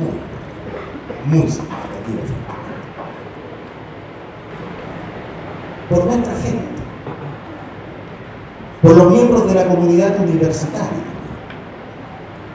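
A man speaks calmly into a microphone, echoing in a large hall.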